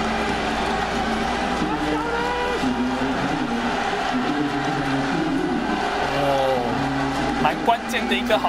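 A crowd roars and chants in a large stadium.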